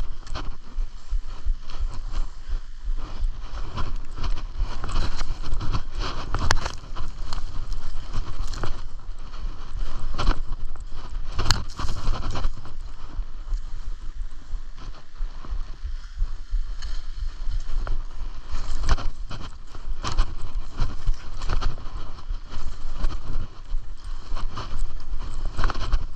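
Skis hiss and scrape through soft snow.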